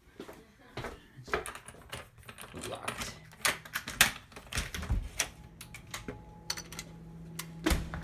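A door handle rattles and its latch clicks.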